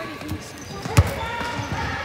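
A basketball thuds as it is caught.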